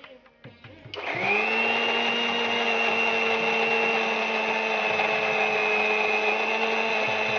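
An electric mixer whirs loudly and steadily.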